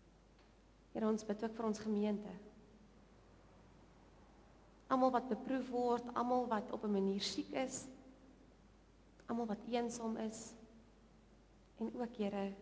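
A woman speaks calmly into a microphone, in pauses.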